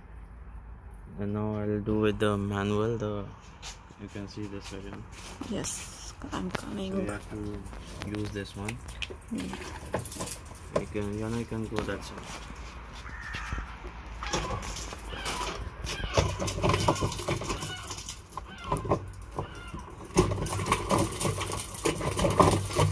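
Crushed grapes squelch and drip into a barrel.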